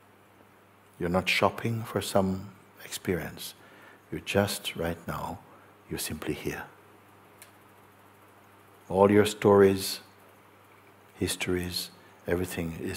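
An older man speaks calmly and slowly into a close microphone.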